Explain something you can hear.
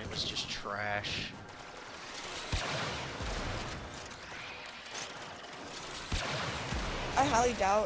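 Gunfire cracks in short, sharp blasts.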